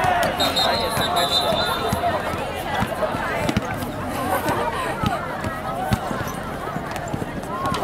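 Young girls shout and chatter as they play.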